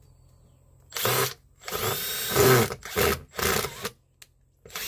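A cordless drill drives a screw into a plywood panel.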